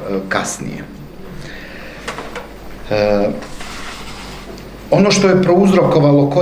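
A man speaks calmly into a microphone in a room that echoes a little.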